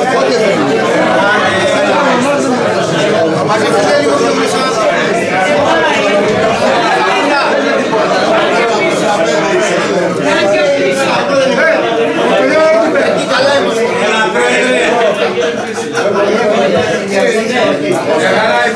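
A crowd of men and women sing together loudly in a room.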